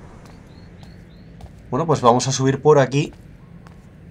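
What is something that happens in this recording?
Footsteps tread softly on stone.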